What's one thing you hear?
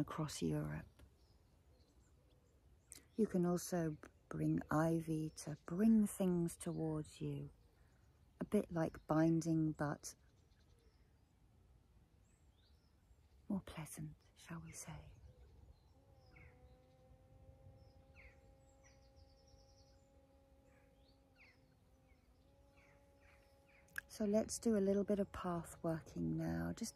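A middle-aged woman speaks calmly and softly into a close microphone, with long pauses.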